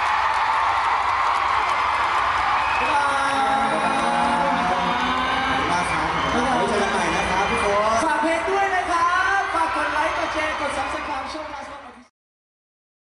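A crowd screams and cheers loudly in a large hall.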